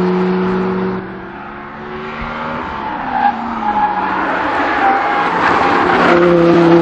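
A sports car engine revs loudly on a race track.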